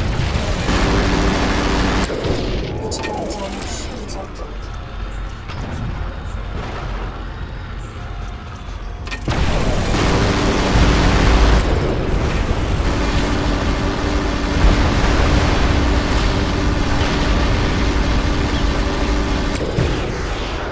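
A rotary autocannon fires in rapid bursts.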